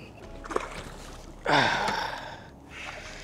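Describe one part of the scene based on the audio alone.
Something splashes in calm water close by.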